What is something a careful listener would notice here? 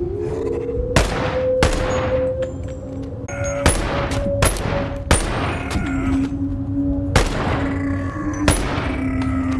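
A pistol fires single sharp shots.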